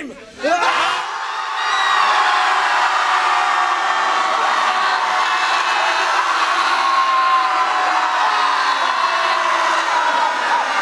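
A studio audience cheers and applauds loudly.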